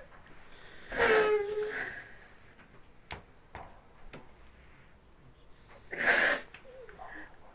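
An elderly woman sobs and sniffles.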